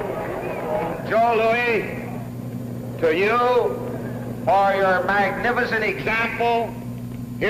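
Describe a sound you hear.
A middle-aged man announces in drawn-out calls over a public address loudspeaker, echoing through a large hall.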